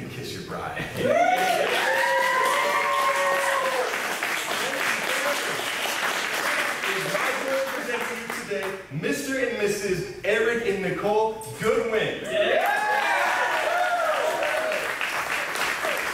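A crowd applauds loudly in a room.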